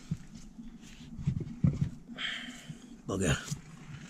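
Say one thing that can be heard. A hand rubs against a rubber tyre.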